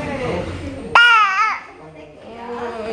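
A baby whimpers and cries.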